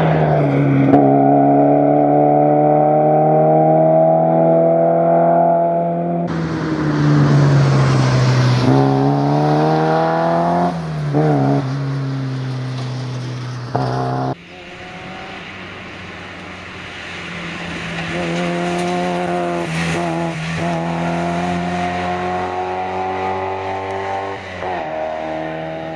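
A rear-engined rally car accelerates hard at full throttle, its engine climbing through the gears.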